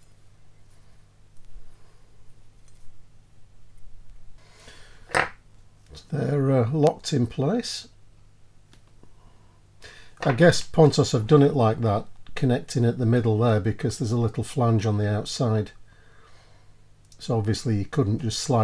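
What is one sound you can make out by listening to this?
Metal tweezers tick softly against a small metal part.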